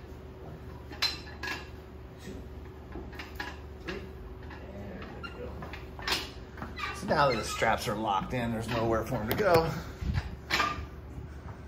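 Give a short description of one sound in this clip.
Metal weight plates clank on a loaded bar as it is lifted and set down.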